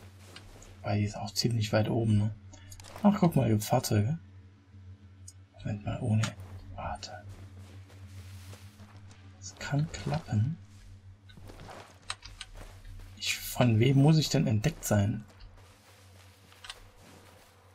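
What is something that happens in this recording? Footsteps crunch through snow and gravel.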